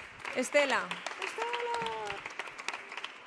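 Young women cheer and squeal excitedly nearby.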